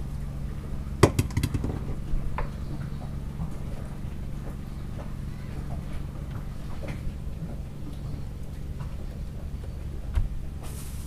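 Footsteps thud and knock on a wooden deck.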